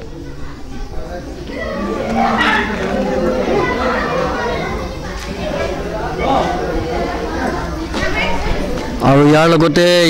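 A crowd of men and women chatter in the open.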